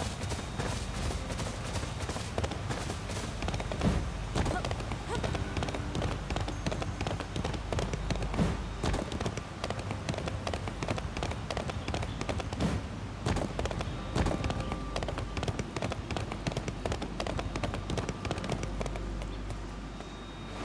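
A fire crackles in a forge.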